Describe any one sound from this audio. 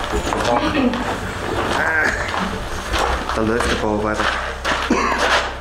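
Footsteps crunch on rubble underfoot.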